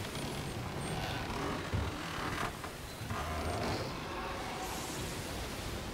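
Heavy waves surge and crash.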